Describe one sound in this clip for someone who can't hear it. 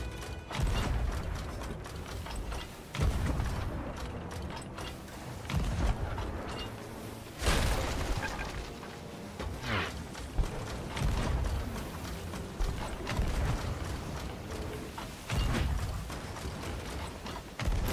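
Ocean waves wash steadily around a ship.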